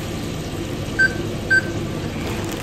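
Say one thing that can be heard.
A kitchen machine beeps twice.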